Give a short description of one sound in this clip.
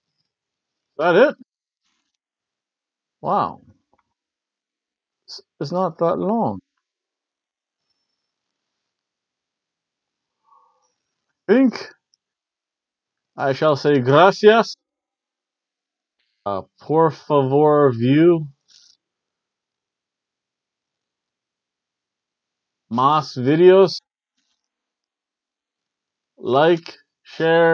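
A man speaks into a close microphone in short, animated bursts with long pauses.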